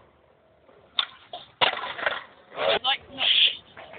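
A skateboard clatters and smacks on concrete.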